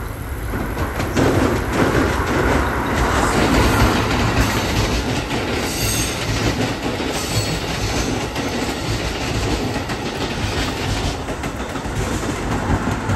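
Train wheels clatter and squeal over the rail joints.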